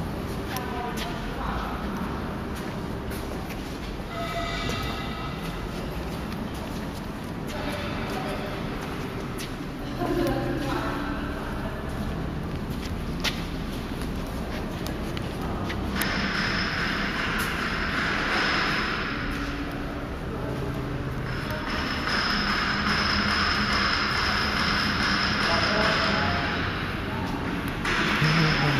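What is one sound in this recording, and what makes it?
Machinery hums steadily in a large echoing hall.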